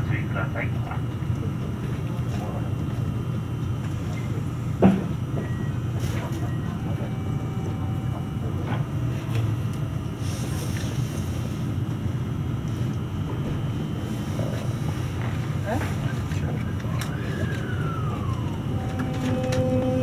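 An electric express train hums while standing at a platform.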